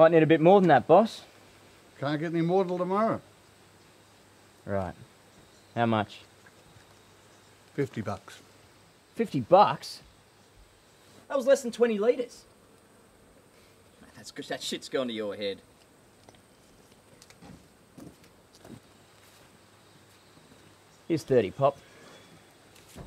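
An older man speaks gruffly nearby.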